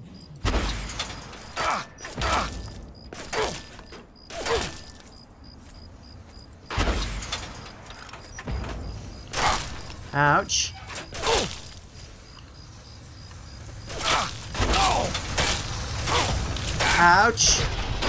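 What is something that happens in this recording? Guns fire in loud sharp bursts.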